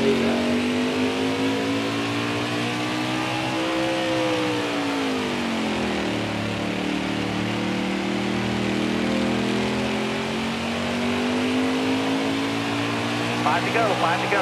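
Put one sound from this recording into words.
A racing truck engine roars steadily, dropping in pitch through a turn and rising again.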